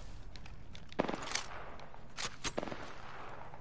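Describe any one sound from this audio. A rifle is reloaded with sharp metallic clicks.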